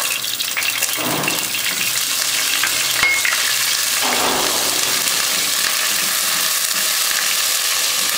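A spatula scrapes and stirs in a pan.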